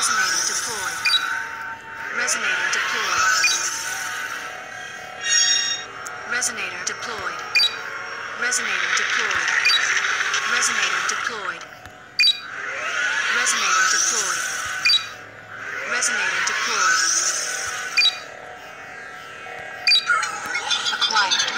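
Electronic game sound effects whoosh and chime again and again.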